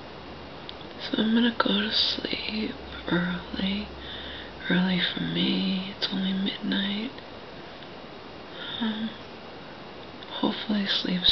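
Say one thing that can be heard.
A middle-aged woman speaks softly and drowsily, close by.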